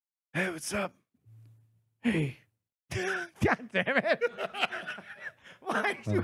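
A second man talks and laughs into a microphone.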